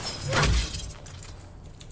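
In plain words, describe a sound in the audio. An energy blast bursts with a loud whoosh.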